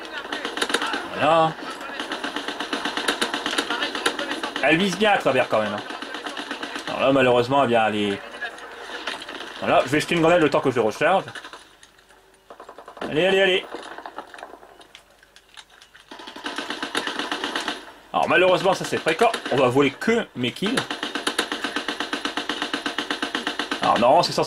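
Rapid gunfire rattles from a video game.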